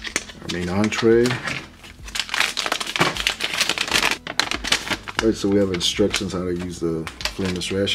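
Sheets of paper rustle and flap.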